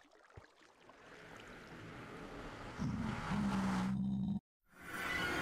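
A magical portal hums with a rising whoosh.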